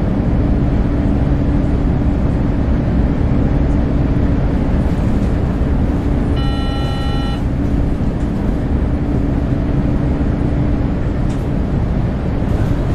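A bus engine hums and rumbles steadily while driving.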